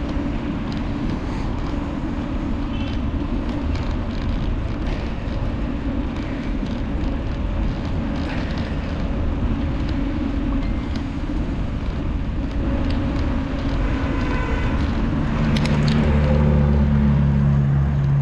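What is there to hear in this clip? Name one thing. Wind rushes loudly past while riding outdoors.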